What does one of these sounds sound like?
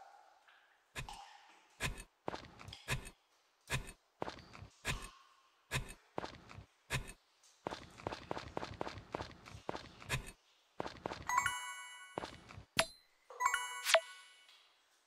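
A hammer strikes rocks with sharp, repeated knocks.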